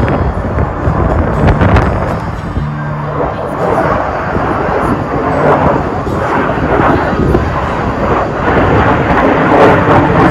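A jet engine roars overhead.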